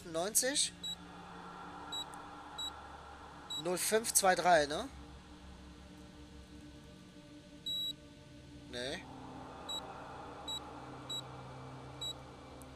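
Keypad buttons give short, high beeps as they are pressed.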